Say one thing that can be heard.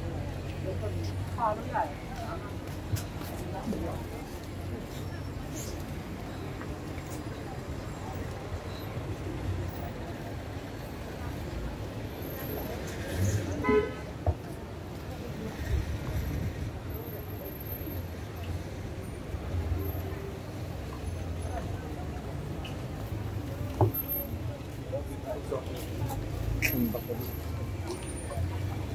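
Footsteps and street bustle fill a busy outdoor walkway.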